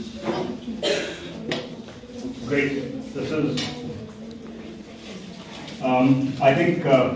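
A man speaks over a microphone.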